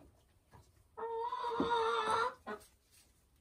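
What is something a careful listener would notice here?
A hen squawks loudly in a long cackle.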